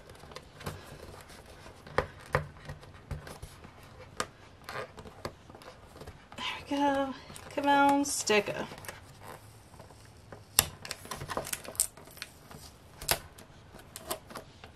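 Fingers tap and rub against a cardboard box.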